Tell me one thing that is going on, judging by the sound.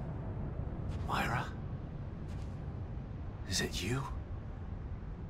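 A man speaks quietly and wearily, close by.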